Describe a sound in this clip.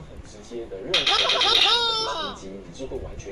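A squeaky cartoon voice chatters from a small speaker.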